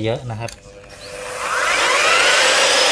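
An angle grinder starts up and whines louder as it spins up to speed.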